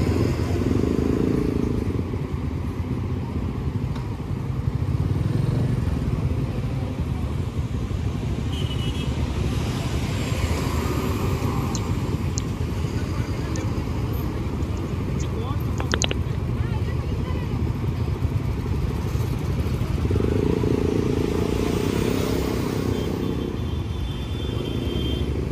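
Motorcycle engines rumble steadily close by.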